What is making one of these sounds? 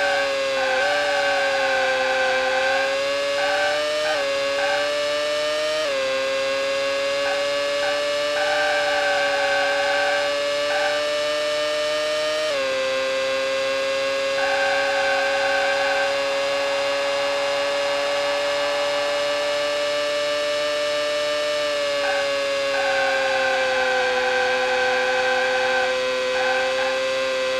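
Tyres squeal intermittently through the corners.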